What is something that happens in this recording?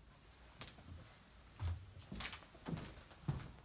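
Footsteps thud on a floor and move away.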